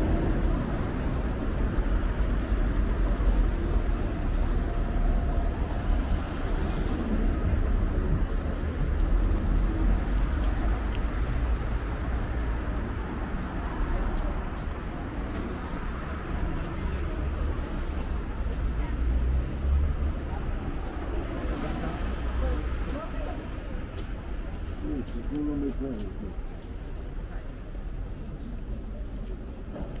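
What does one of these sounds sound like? Low wind buffets outdoors.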